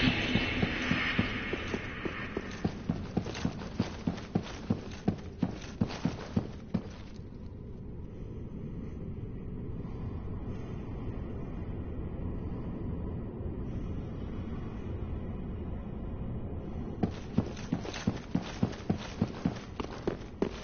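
Heavy footsteps run quickly across a stone floor.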